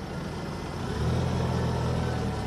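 A car engine revs as the car pulls away.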